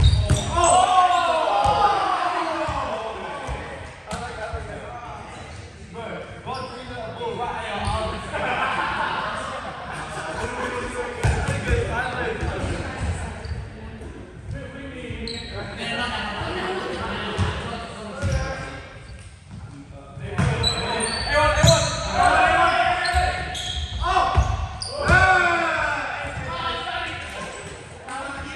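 Young men call out and talk loudly in a large echoing hall.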